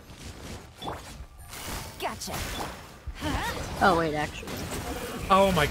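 Swords swish and strike.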